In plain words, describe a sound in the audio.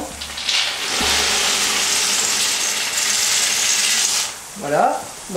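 Nuts pour and rattle into a pot of hot syrup.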